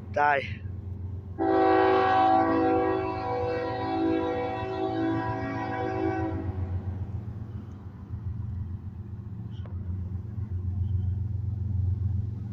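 A diesel locomotive rumbles as a freight train rolls along.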